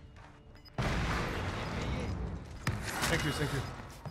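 Gunfire and explosions from a video game crackle and boom.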